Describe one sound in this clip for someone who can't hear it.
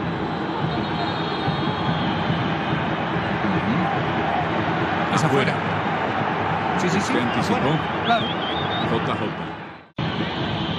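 Young men shout and argue close by.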